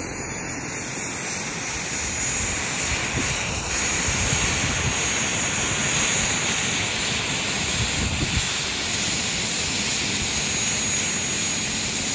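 A model helicopter's motor whines steadily and grows louder as it approaches.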